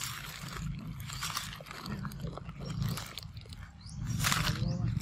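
A young macaque chews and slurps at a ripe mango.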